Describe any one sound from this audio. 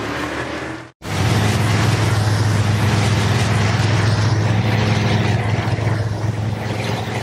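A car engine idles with a deep steady rumble.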